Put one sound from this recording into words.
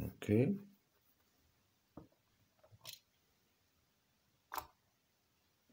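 A small plastic toy clicks and taps on a hard surface.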